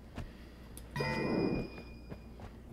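A burst of magic crackles and hums briefly.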